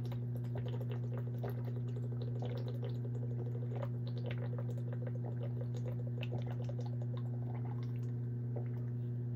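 A boy gulps water quickly from a bottle, swallowing again and again.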